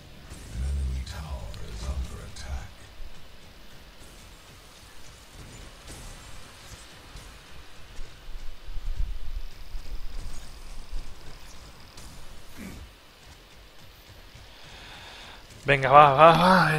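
Heavy metallic footsteps thud steadily on the ground.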